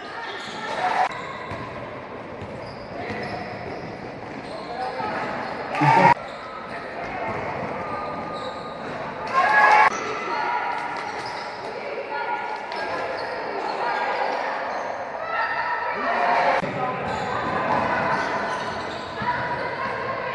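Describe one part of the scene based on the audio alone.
Girls shout to each other across an echoing hall.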